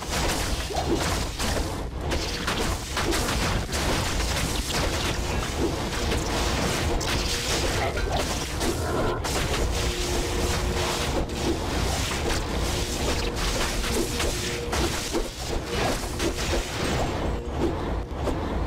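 Fire spells burst and crackle in a fast, constant stream.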